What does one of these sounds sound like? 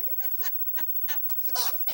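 A young woman laughs loudly into a microphone.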